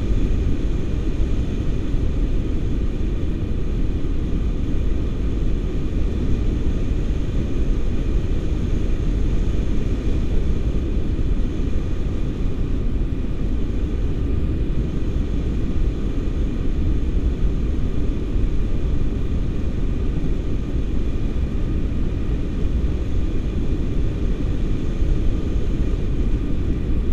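Strong wind rushes and buffets loudly past a microphone.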